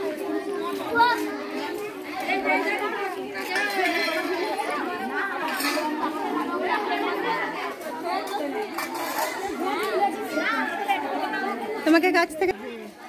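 Women chatter in the background outdoors.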